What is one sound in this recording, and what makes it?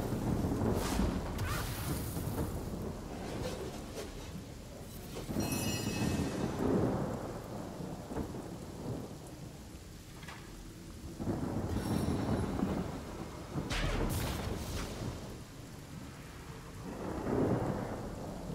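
Weapons strike and magic bursts crackle in a fight.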